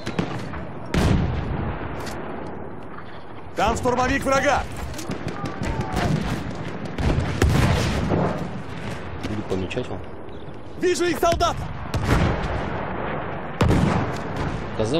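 Heavy explosions boom in the distance.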